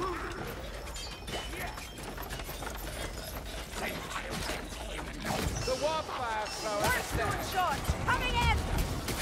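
Blades swing and strike with sharp, metallic hits.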